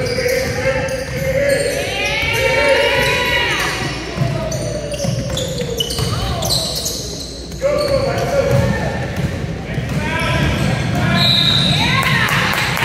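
Young players and spectators shout and call out in an echoing hall.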